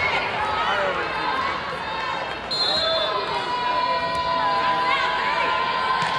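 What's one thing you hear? Voices of a crowd chatter and call out in a large echoing gym.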